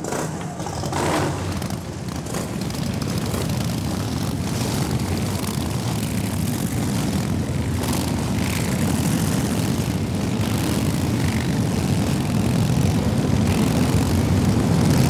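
Motorcycle engines idle with a steady low rumble.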